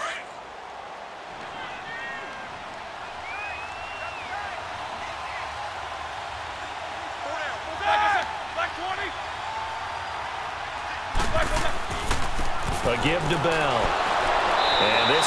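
A stadium crowd roars steadily, growing louder as the play unfolds.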